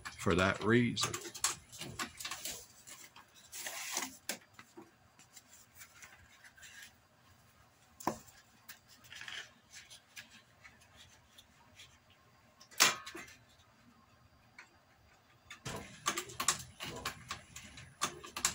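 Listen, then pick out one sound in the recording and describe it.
Leather rustles and slides against metal as hands handle it.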